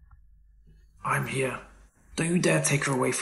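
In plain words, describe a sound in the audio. A young man speaks forcefully.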